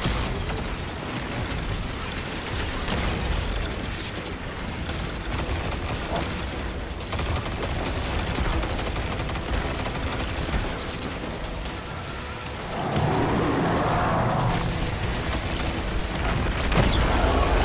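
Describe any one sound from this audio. Energy blasts crackle and explode in a video game.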